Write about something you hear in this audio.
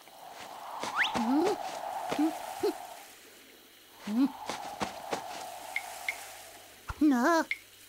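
A small chick chirps in short, high peeps.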